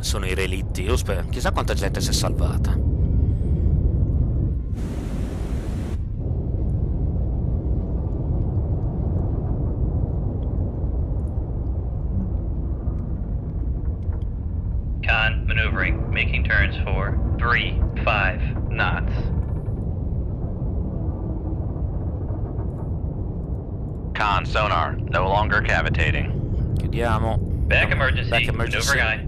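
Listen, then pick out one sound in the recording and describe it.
A submarine's engine rumbles low and steady underwater.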